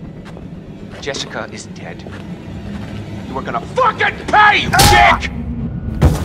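A young man shouts angrily up close.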